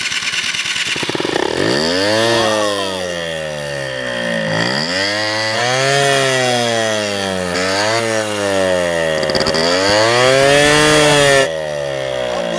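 A scooter engine revs up and down loudly.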